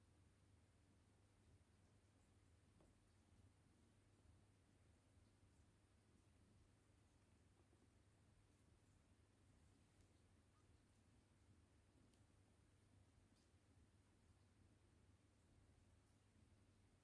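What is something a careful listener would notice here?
Newborn kittens suckle softly, with faint smacking sounds.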